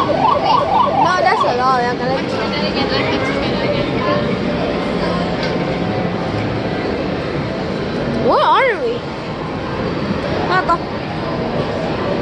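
Arcade machines play electronic jingles and beeping tunes all around.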